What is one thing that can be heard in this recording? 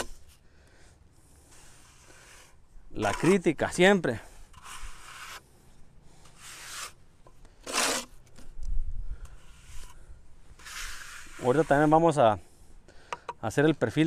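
A trowel scrapes wet mortar on a board.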